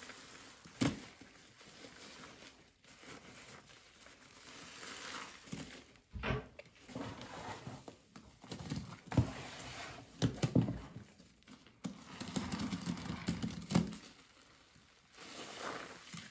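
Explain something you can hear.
A sponge squelches and squishes in thick wet foam.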